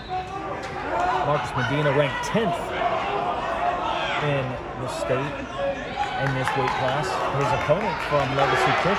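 A man shouts loudly from the sideline.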